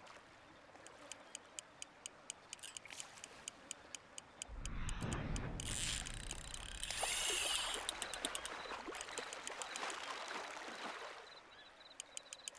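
A fishing reel clicks rapidly as line is reeled in.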